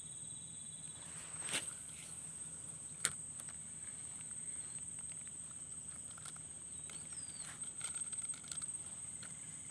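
Tall grass and leafy plants rustle as someone pushes through them.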